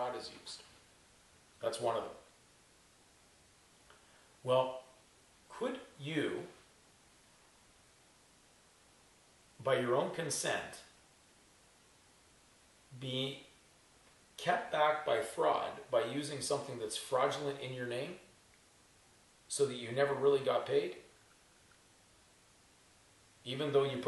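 An older man talks calmly nearby, in short bursts with pauses.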